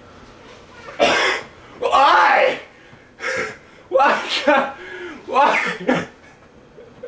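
A young man shouts and yells loudly in bursts, close by.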